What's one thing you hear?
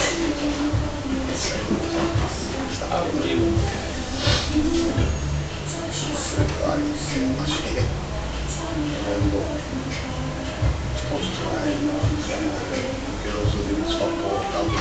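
Men and women chatter together in a busy room.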